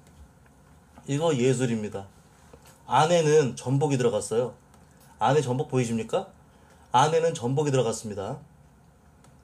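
A man talks calmly and close to a microphone, in short bursts.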